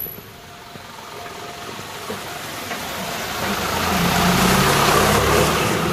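A truck rumbles as it approaches and passes close by.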